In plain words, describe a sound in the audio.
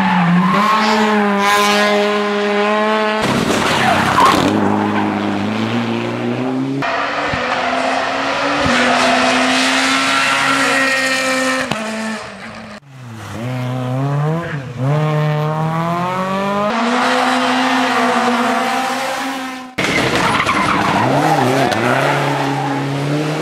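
Rally car engines roar and rev hard as the cars race past, changing gear.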